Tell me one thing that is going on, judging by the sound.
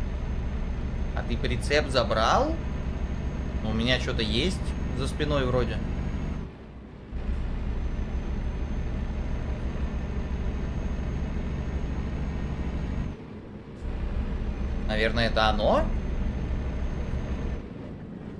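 A truck engine hums steadily as it drives.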